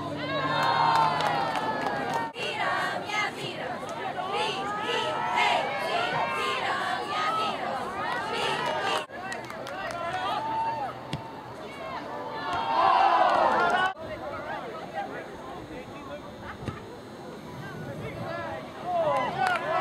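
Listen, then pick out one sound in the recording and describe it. A crowd of young players and spectators shouts and cheers outdoors.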